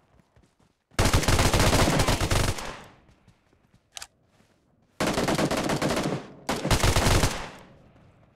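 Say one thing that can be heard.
Gunfire rattles in loud rapid bursts.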